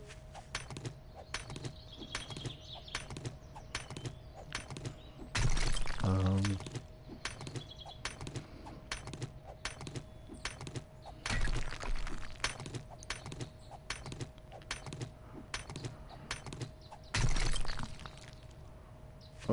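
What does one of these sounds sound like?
A stone axe strikes rock again and again with sharp knocks.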